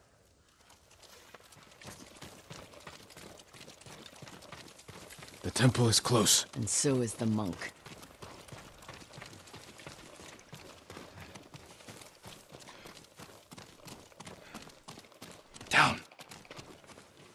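Footsteps run along a dirt path.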